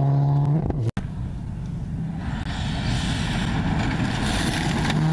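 A second rally car engine roars as the car approaches.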